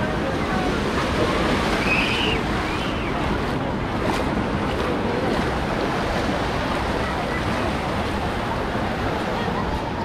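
Small waves wash and break onto the shore.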